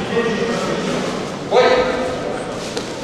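A man calls out commands to the fighters in an echoing hall.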